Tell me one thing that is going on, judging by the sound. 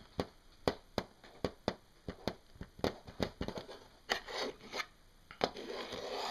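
Fingertips tap lightly on a hard surface.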